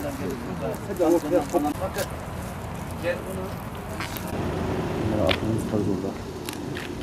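Men talk in low voices outdoors.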